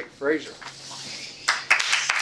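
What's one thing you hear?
An older man speaks to an audience.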